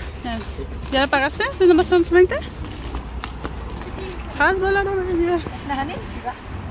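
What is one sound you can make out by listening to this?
A young girl speaks in a high voice close by.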